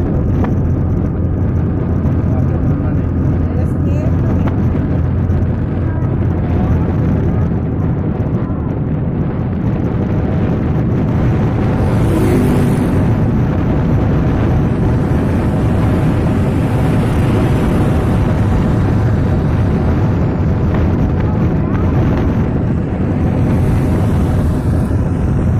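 Tyres rumble on asphalt from inside a moving car.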